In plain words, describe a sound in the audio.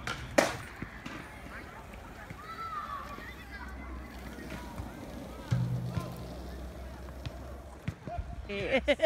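Skateboard wheels roll and rumble on pavement.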